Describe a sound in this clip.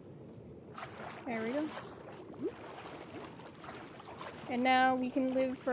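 Water swishes and bubbles softly as someone swims underwater.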